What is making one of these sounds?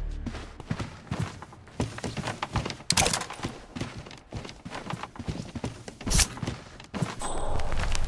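Footsteps tap on a wooden staircase and floor.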